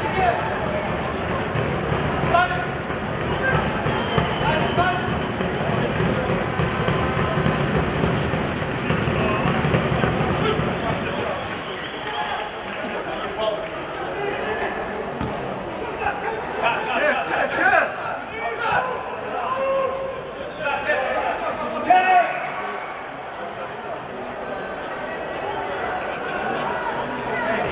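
Young men shout and call out to each other across an open field.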